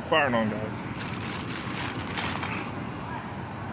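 Plastic bags rustle close by.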